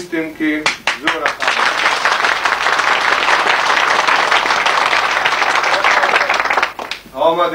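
A man speaks loudly into a microphone to an audience.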